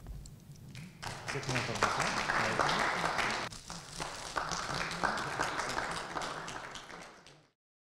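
People applaud.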